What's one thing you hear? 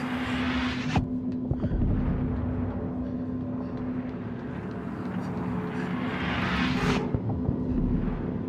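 Small footsteps patter quickly across a hard floor.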